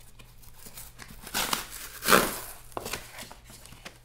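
A cardboard flap tears open.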